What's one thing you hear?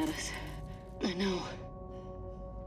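A second young woman answers briefly, muffled through a gas mask.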